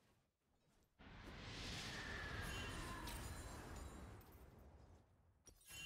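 Magical spell effects whoosh and crash during a fight.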